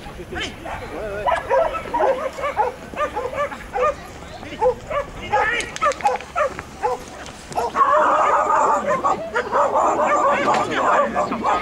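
A man calls out commands to a dog from a distance.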